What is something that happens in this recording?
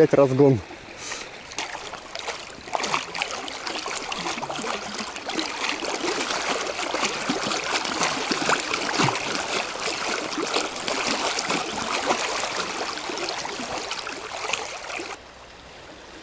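A fish thrashes and splashes in the water close by.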